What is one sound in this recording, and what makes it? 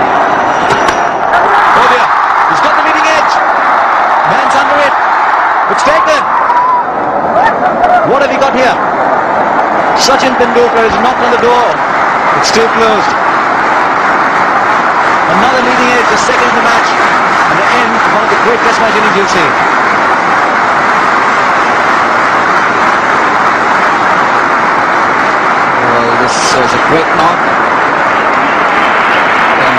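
A large crowd roars and cheers loudly throughout.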